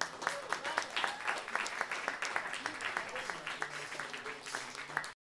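A small acoustic band plays a lively tune.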